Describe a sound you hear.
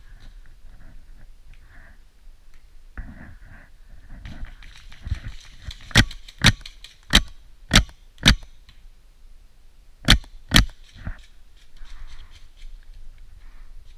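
Dry grass rustles and crunches close by.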